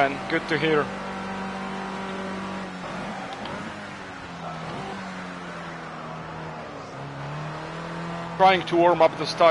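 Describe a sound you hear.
A racing car engine drones steadily, its pitch rising and dropping with gear changes.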